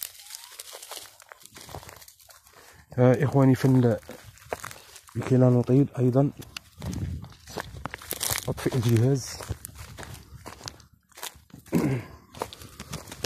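Footsteps crunch through dry grass and leaves.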